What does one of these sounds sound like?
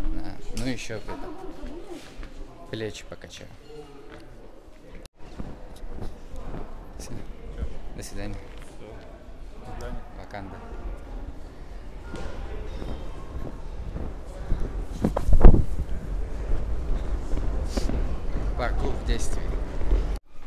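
A young man talks with animation close to a microphone in a large echoing hall.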